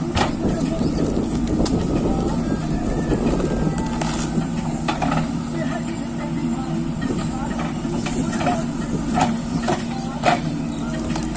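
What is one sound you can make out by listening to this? A diesel engine of a backhoe loader rumbles steadily nearby.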